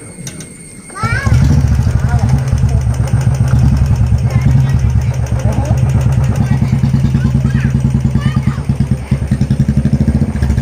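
A motorcycle engine starts and idles with a steady low thumping.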